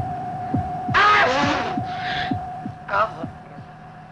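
A man screams loudly.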